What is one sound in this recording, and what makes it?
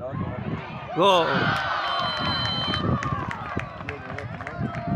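A crowd cheers loudly and excitedly.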